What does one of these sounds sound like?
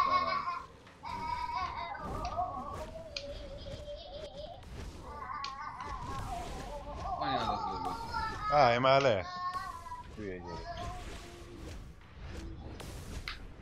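Punches and energy blasts thud and crack in a fight.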